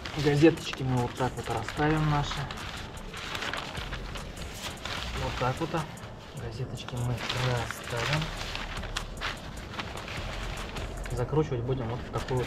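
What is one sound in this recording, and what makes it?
Newspaper pages rustle and crinkle as they are unfolded.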